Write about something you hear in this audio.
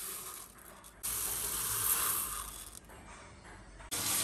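Rice pours into a metal pot.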